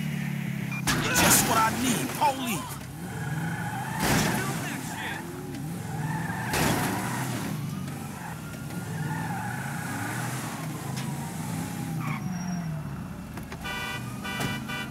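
A car engine hums as the car rolls and turns.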